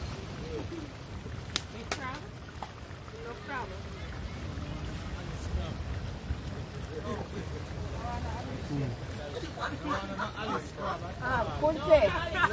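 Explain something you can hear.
A woman and a man talk with animation nearby outdoors.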